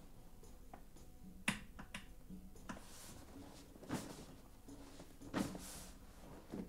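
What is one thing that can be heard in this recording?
A leather office chair creaks and thumps.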